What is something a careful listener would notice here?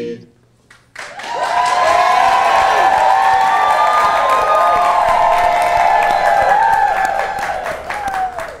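A large crowd applauds.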